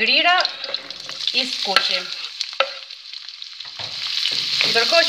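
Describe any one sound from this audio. Vegetables sizzle loudly in hot oil.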